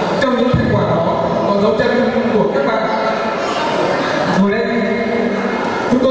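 A young man speaks steadily into a microphone, heard through loudspeakers.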